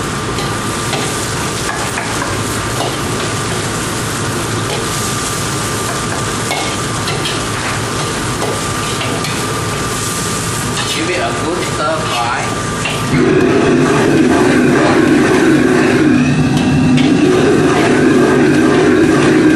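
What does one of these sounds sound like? A metal ladle scrapes and clanks in a carbon-steel wok.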